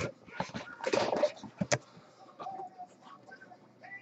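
Cardboard scrapes as a box lid is lifted off.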